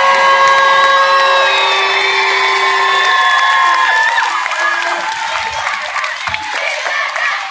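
A large crowd cheers and shouts in a big echoing arena.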